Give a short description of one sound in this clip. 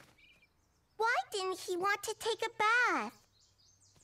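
A young boy speaks cheerfully, close by.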